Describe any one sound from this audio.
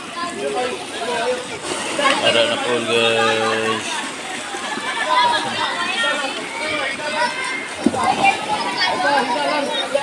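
Water splashes loudly as a rider plunges into a pool.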